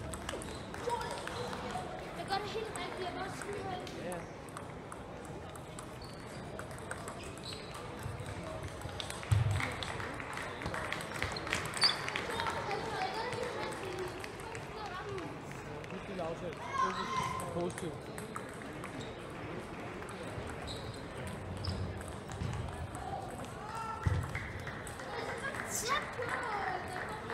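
A ping pong ball clicks back and forth across a table.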